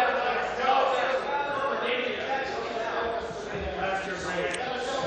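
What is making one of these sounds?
A man speaks steadily through a microphone in a large chamber.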